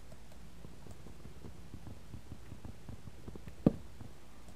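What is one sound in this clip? Quick soft tapping thuds sound as a wooden block is hit repeatedly.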